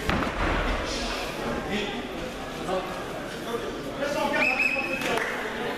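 A crowd in a large echoing hall shouts and cheers.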